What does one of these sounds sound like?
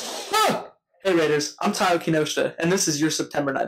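A young man speaks cheerfully and with animation, close by.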